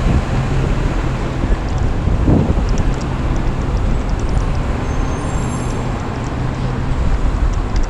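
Car engines hum nearby in traffic.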